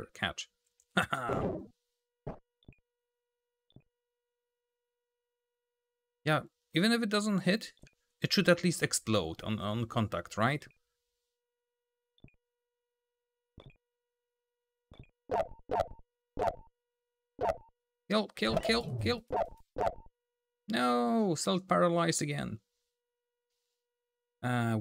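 A man talks with animation close to a microphone, in bursts with pauses.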